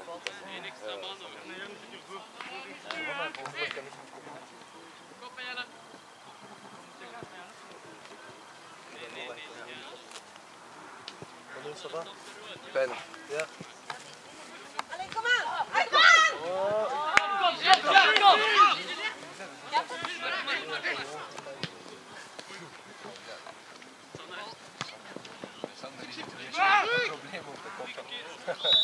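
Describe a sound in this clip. Young men shout and call to each other outdoors across an open field.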